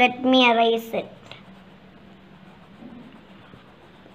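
An eraser rubs on paper.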